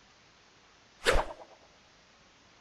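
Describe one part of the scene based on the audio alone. A ball is kicked with a sharp thud.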